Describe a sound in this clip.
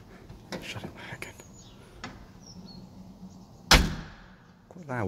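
A heavy door thuds shut.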